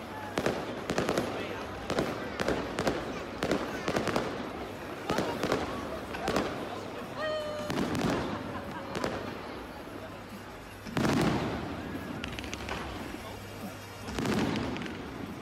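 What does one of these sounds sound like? Fireworks crackle and bang sharply in rapid bursts.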